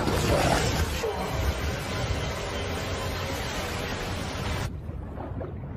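A waterfall roars loudly.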